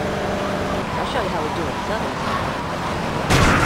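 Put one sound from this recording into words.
Car tyres screech while skidding through a turn.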